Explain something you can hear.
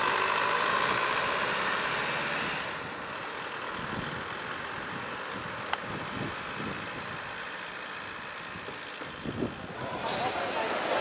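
A car engine hums and pulls away slowly.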